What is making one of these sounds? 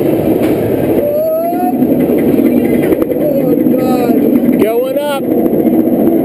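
Roller coaster wheels squeal on the track.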